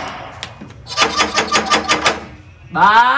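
A man knocks on a door.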